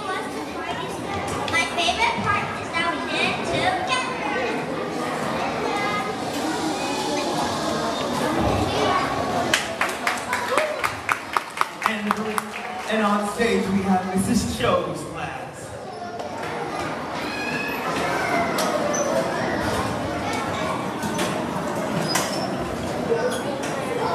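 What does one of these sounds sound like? A group of children sing together in a large echoing hall.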